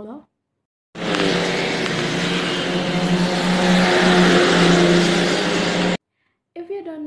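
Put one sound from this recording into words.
A bus drives past on a road.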